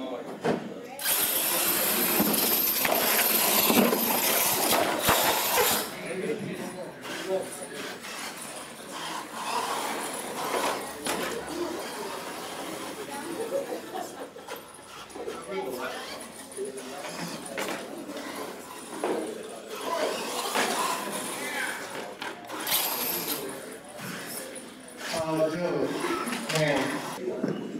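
Knobby tyres of a radio-controlled monster truck rumble across a concrete floor.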